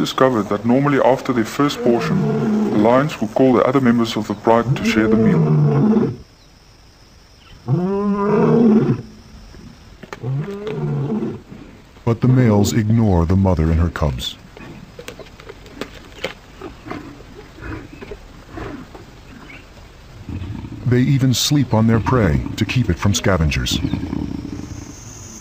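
Lions growl and snarl close by.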